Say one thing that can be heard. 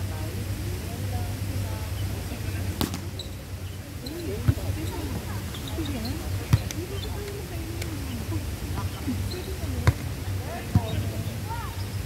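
Young people call out to each other outdoors.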